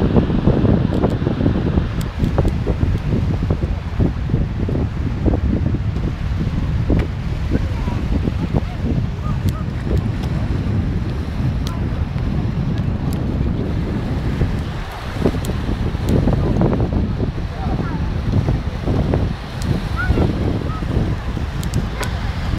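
Waves wash and break on the shore.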